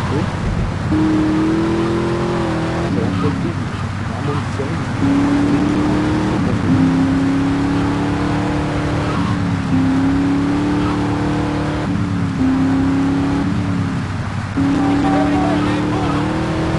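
A car engine revs up and shifts gears again and again as the car drives.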